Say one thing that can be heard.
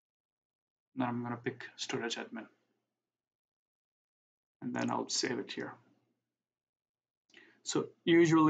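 A young man talks calmly and close to a microphone, in short bursts.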